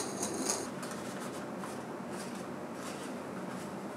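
A paper filter rustles as hands press it into a glass dripper.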